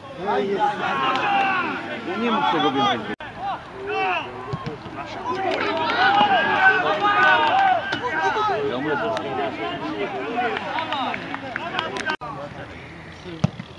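Footballers shout to one another across an open field.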